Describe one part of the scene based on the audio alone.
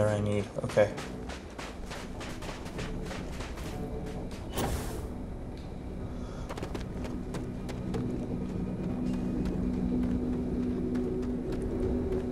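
Footsteps crunch steadily on gravelly ground.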